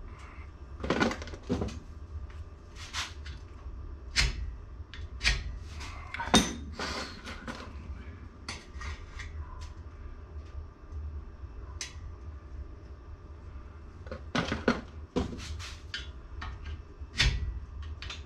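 Metal tools clink and knock against a metal bar.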